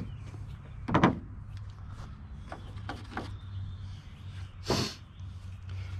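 Wooden pieces knock against each other.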